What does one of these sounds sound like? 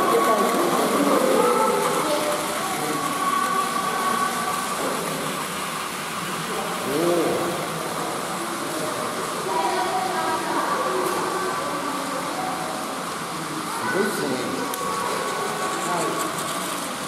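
Children and adults chatter and call out nearby in an echoing room.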